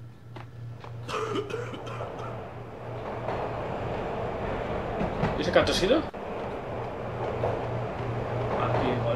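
A subway train rumbles along a platform.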